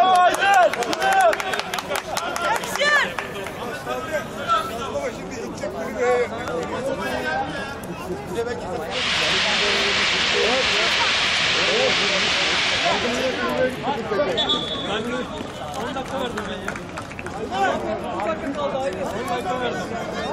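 Several young men shout and argue loudly outdoors.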